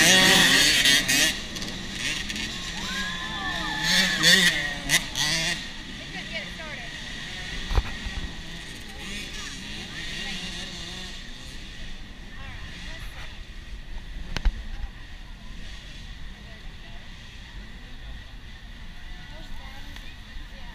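A crowd of spectators chatters and cheers outdoors at a distance.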